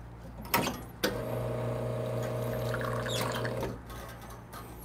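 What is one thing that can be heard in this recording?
An espresso machine hums steadily as it pours hot water into a glass.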